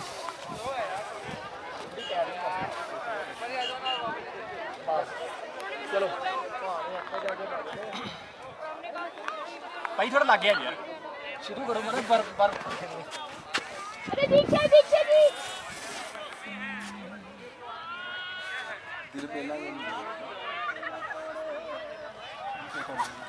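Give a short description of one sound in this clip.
A young man speaks into a microphone outdoors with animation.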